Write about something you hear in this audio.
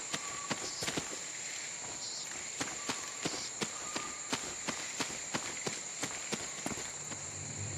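Quick footsteps run over soft ground.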